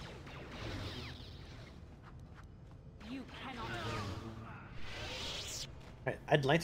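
Lightsabers swoosh and clash in a fight.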